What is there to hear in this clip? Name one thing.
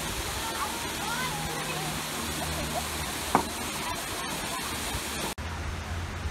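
Water splashes steadily down a small waterfall.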